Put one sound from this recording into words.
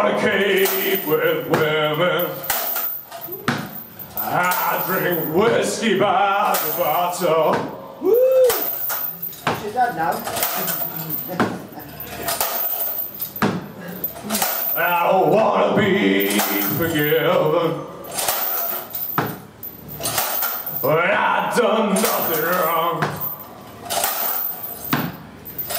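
A tambourine jingles in rhythm.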